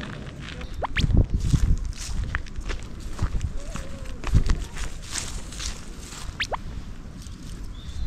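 Footsteps crunch on dry grass.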